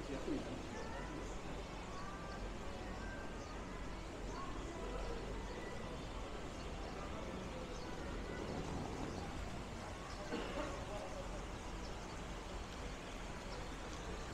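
Voices of passers-by murmur indistinctly nearby.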